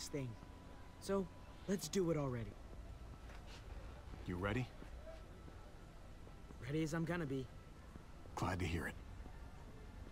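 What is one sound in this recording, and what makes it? A man answers calmly, close up.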